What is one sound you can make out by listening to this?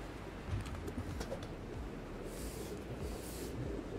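A broom sweeps across a wooden floor.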